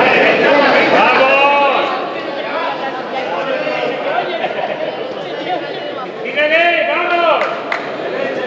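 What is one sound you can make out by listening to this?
Men in the crowd shout loudly in bursts.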